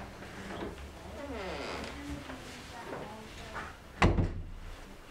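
A door closes with a thud.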